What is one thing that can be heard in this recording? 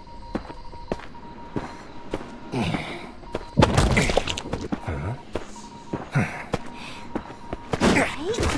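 Footsteps patter quickly across the ground.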